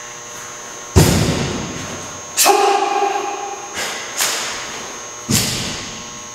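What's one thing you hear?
Bare feet stamp hard on a wooden floor in an echoing hall.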